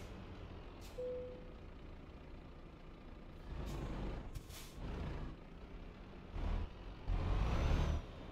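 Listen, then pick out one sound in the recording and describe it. A truck engine rumbles low as the truck drives slowly.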